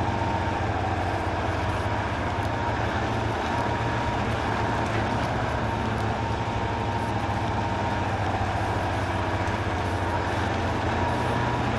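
A heavy truck engine rumbles steadily at low revs.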